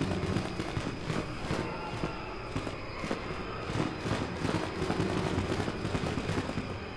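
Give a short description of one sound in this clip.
Footsteps run quickly across hollow wooden boards.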